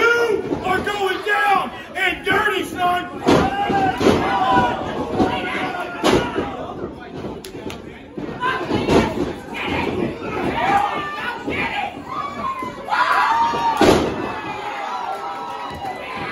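Men in a crowd shout and cheer loudly nearby in an echoing hall.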